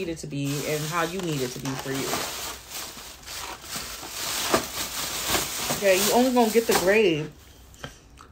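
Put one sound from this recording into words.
Paper wrapping rustles and crinkles loudly.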